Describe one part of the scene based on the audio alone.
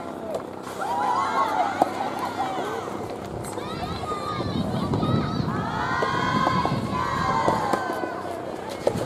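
Young women shout and cheer from across the court.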